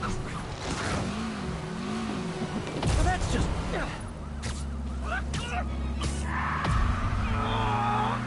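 Car engines hum and rumble in traffic.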